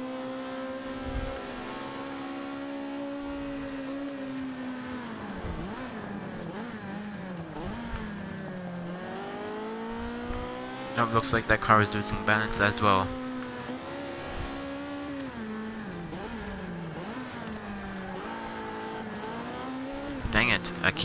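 A racing car engine roars, revving up and dropping with each gear change.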